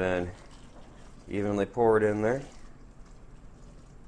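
Water pours from a jug onto soil.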